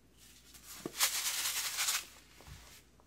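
A plastic packet crinkles in a hand.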